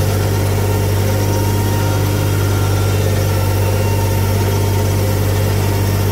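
A tiller churns through dry soil behind a tractor.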